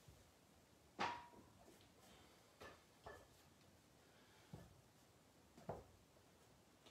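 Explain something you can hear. Dumbbells knock against the floor.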